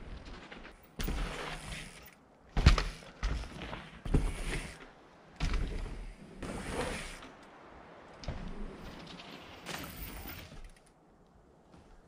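Mountain bike tyres roll and crunch over dirt.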